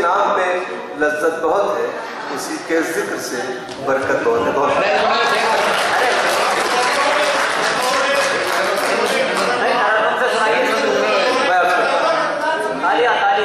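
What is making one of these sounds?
A man recites with animation through a microphone in a hall.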